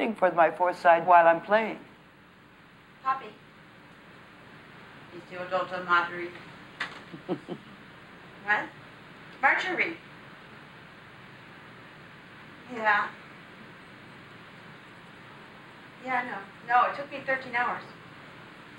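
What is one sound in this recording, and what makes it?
A woman talks casually on a phone, close by, in short bursts.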